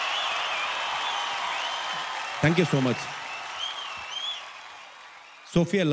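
A large crowd applauds in a big hall.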